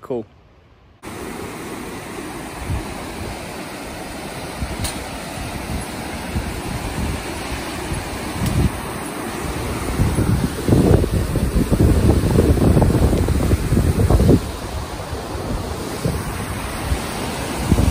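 A river rushes over rocks.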